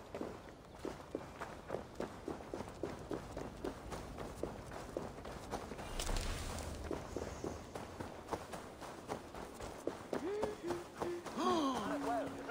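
Footsteps run quickly over stones and grass.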